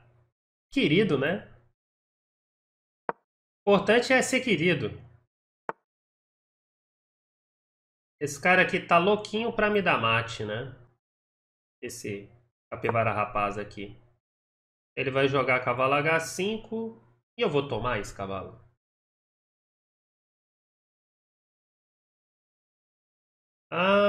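A man talks with animation close to a microphone, in short bursts with pauses.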